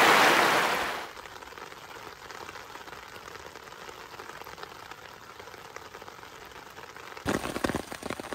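Rain splashes steadily onto a wet wooden deck.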